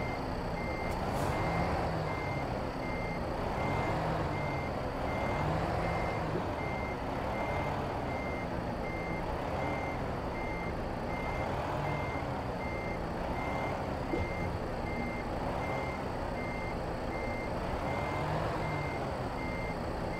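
A truck's reversing alarm beeps steadily and rapidly.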